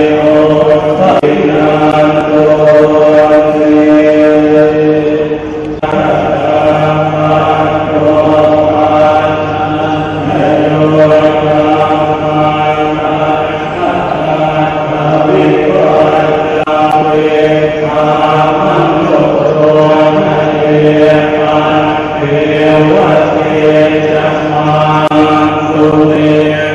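A large crowd of men and women chants together in a steady drone, echoing through a large hall.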